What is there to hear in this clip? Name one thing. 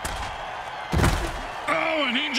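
Heavy bodies thud together in a tackle.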